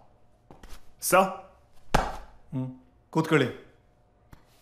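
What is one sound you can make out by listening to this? A man speaks sharply, close by.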